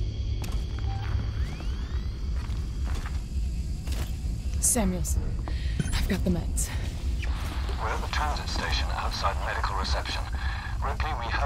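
A motion tracker beeps with short electronic pings.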